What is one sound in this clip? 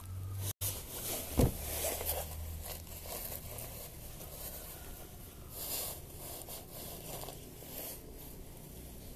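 A woman speaks quietly close by.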